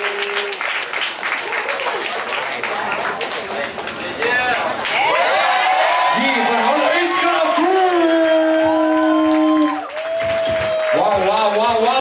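A crowd cheers and shouts in a large, echoing hall.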